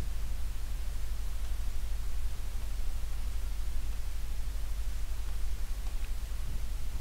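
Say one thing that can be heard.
A pen taps and draws on a smooth board.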